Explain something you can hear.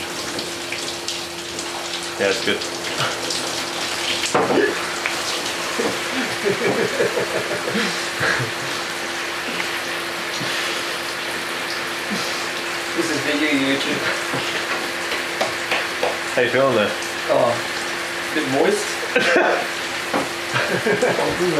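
A man talks with animation close by in a small echoing room.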